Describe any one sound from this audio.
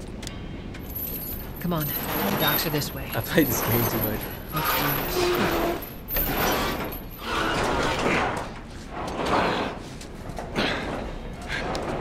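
A metal shutter rattles as it is pushed up.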